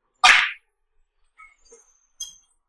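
Billiard balls knock against each other and the cushions.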